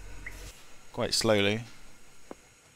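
A steam locomotive whistles briefly.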